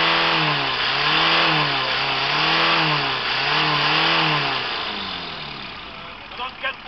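A car engine revs loudly, rising and falling in pitch again and again, then fades down.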